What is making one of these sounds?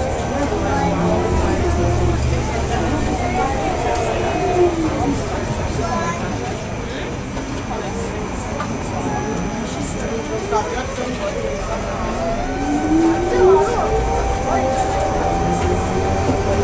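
A tram's electric motor whines, rising and falling in pitch.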